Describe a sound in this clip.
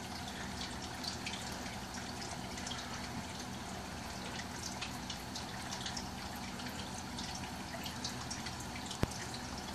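Water bubbles and crackles softly in a fish tank.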